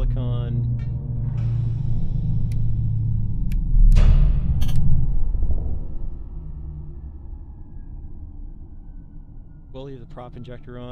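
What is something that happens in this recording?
A spaceship engine hums with a deep, steady rumble that fades down partway through.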